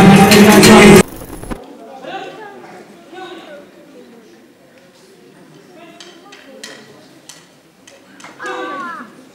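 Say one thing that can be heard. A crowd of spectators chatters quietly in the background.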